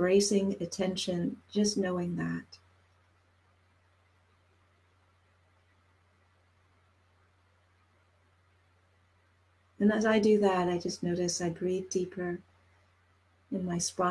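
A middle-aged woman speaks calmly into a headset microphone, with pauses.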